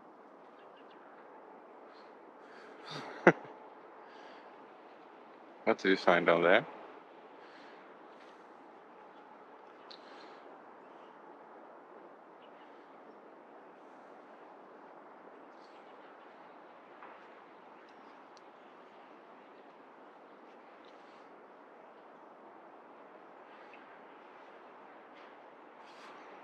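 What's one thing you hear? A dog sniffs around a hole in the snow.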